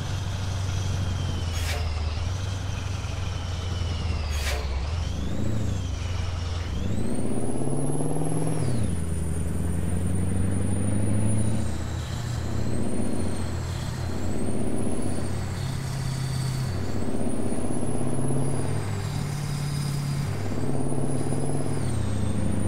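A truck engine drones and repeatedly revs up and down.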